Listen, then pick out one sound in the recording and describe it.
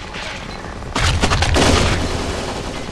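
Gunshots ring out in a loud burst.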